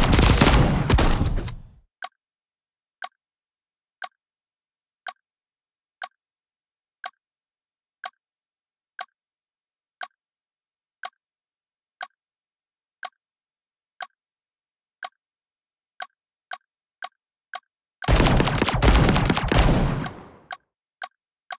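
A gun fires in a loud rapid burst.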